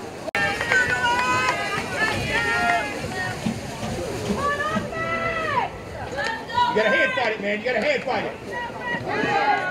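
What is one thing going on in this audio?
A crowd of spectators cheers and shouts in the distance outdoors.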